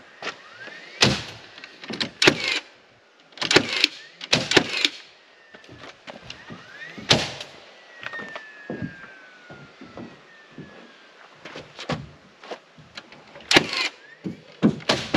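Wood knocks and thumps as boards are handled.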